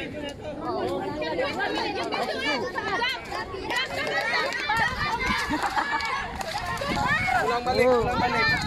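Several young people talk and shout excitedly nearby outdoors.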